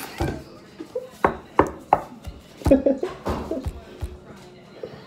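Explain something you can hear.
Hands bang on a wooden table.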